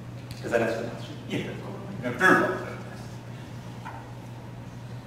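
A man speaks calmly to an audience through a microphone in a large room.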